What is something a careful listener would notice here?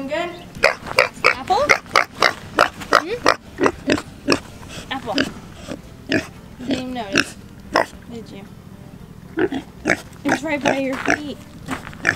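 Pigs grunt and squeal close by.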